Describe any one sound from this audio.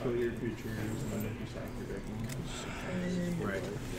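A card slides softly across a playing mat.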